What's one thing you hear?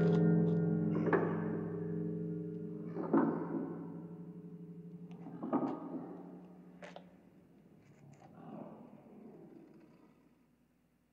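A clock strikes with deep ringing chimes that slowly fade.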